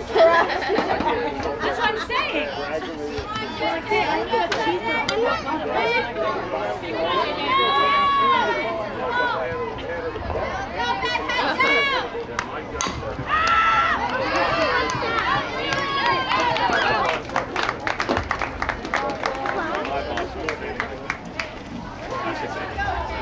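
Young players and spectators shout and cheer across an open field.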